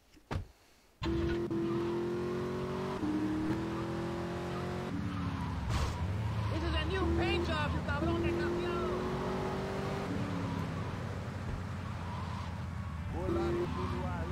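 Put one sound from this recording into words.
A car engine roars as the car drives off and speeds along.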